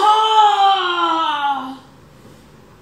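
A man calls out in a long, falling chant.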